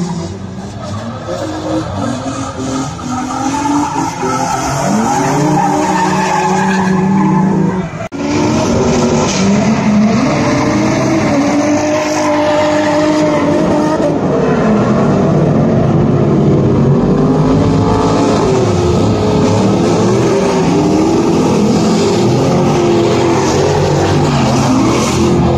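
Several car engines roar and rev loudly, rising and falling.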